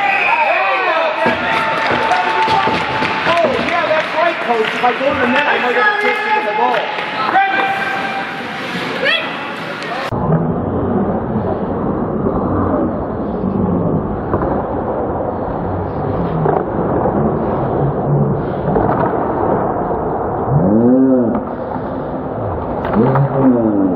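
Ice skates scrape and hiss across an ice rink.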